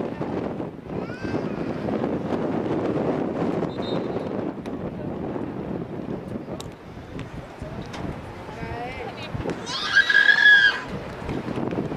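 Young women shout to each other across an open field.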